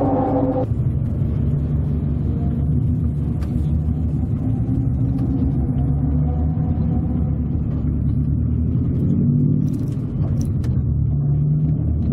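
A car engine drones loudly from inside the cabin, revving up and down.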